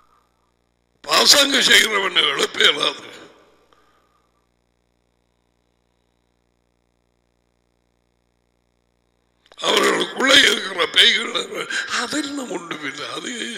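A middle-aged man speaks with animation through a headset microphone.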